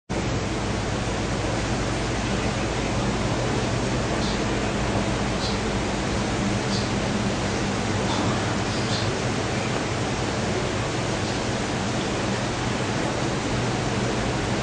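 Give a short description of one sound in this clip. A man weeps and sniffles softly into a microphone.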